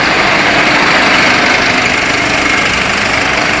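A bus engine rumbles close by as the bus pulls away.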